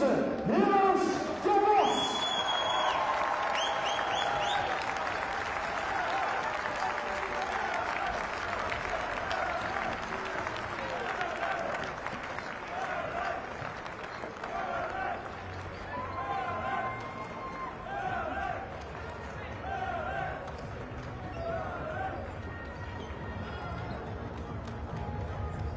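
A large crowd cheers and sings in a big echoing arena.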